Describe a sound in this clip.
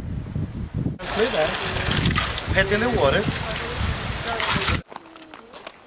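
Water pours from a stone channel.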